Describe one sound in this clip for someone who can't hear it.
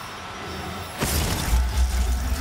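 A sudden burst of sparks whooshes loudly.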